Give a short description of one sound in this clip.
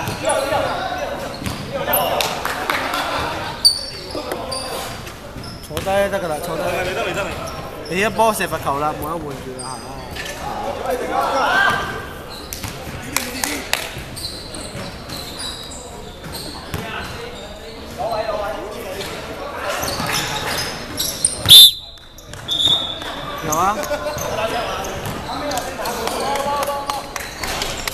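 Young men shout and call out to each other in a large echoing hall.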